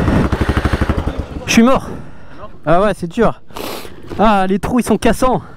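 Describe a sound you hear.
A dirt bike engine idles and revs in short bursts.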